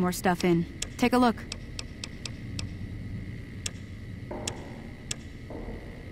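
Short menu clicks tick one after another.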